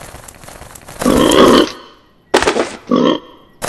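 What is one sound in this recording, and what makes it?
A wild boar snorts and grunts.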